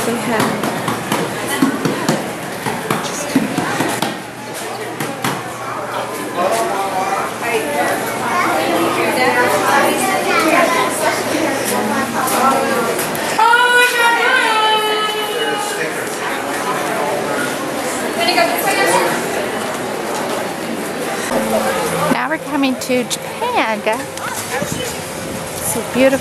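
A crowd of people chatters nearby, outdoors.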